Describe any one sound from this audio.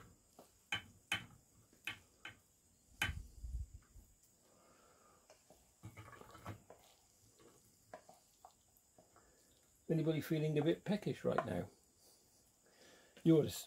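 Cooked food drops softly onto a plate.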